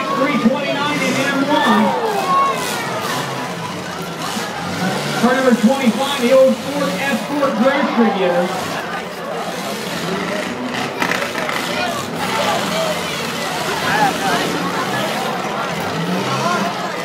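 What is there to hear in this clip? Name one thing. Car engines rev and roar across a dirt track.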